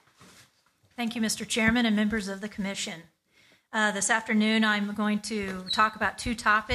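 A woman speaks into a microphone, reading out steadily.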